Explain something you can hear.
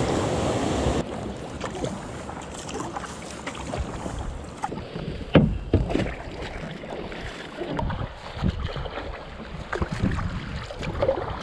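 A kayak paddle splashes and dips into calm water.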